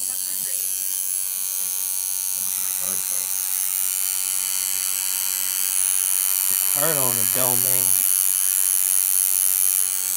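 A tattoo machine buzzes steadily close by.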